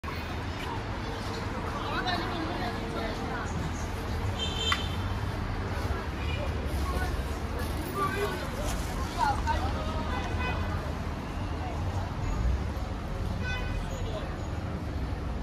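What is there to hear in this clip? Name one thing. Voices of passers-by murmur nearby outdoors.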